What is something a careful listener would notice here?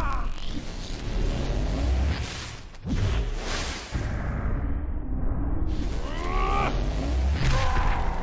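A loud rushing whoosh sweeps past.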